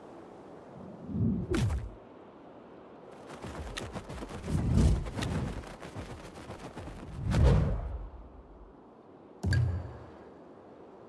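Deep whooshes sweep past.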